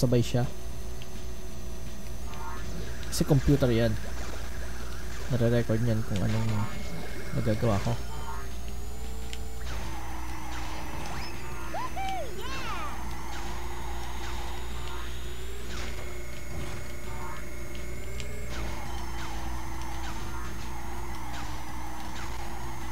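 Kart engines whine and hum from a racing game.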